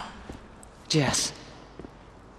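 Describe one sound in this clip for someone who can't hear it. A woman speaks a single word quietly.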